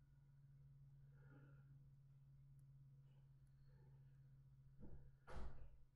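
A young man speaks quietly close to a microphone.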